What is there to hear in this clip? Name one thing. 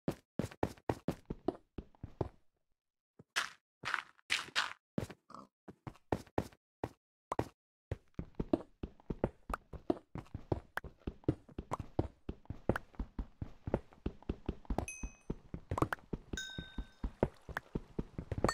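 A pickaxe chips and breaks stone and earth in quick repeated knocks.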